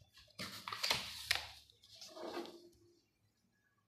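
A plastic ruler clicks against paper.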